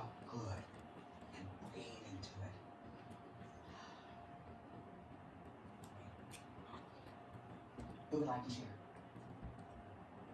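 A young woman chews food noisily close to a microphone.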